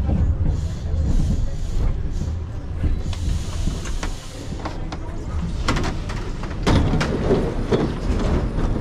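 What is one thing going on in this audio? A subway train rumbles and rattles as it pulls into a station.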